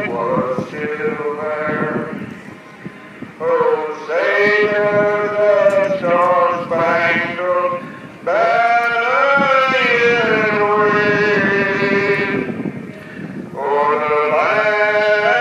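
Car engines rev loudly and roar in bursts outdoors.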